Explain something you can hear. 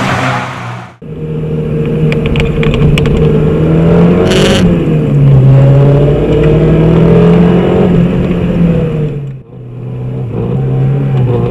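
A racing car engine drones loudly from inside the cabin.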